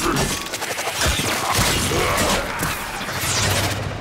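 Blades slash and clang against armour.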